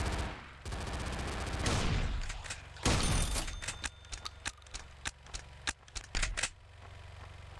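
Gunshots fire in quick bursts, ringing in a hard-walled corridor.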